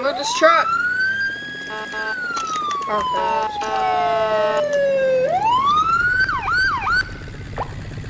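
A fire engine siren wails, rising and falling.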